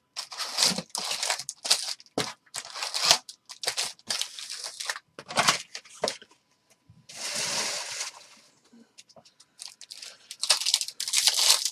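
Foil card packs rustle and crinkle as they are handled.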